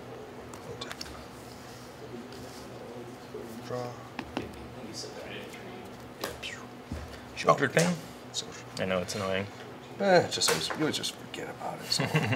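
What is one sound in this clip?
Playing cards tap and slide on a soft mat.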